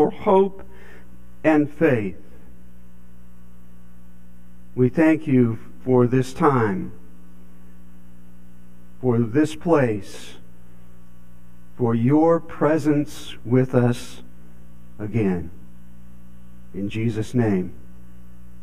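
An elderly man speaks calmly through a microphone, in short phrases with pauses.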